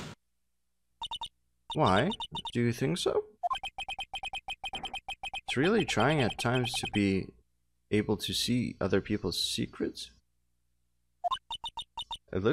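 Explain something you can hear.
Quick electronic blips tick in a steady rapid series.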